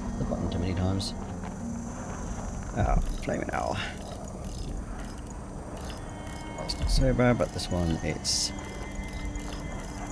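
A metal safe dial clicks as it turns.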